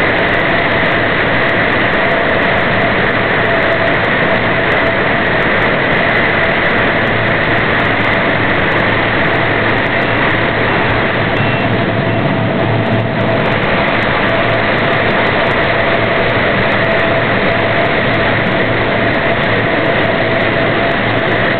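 A forklift engine hums steadily close by.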